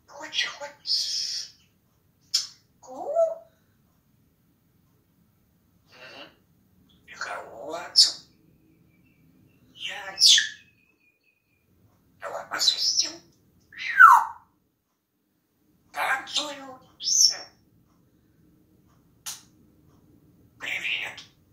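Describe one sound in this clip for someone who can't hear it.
A parrot squawks, whistles and chatters in short bursts close by.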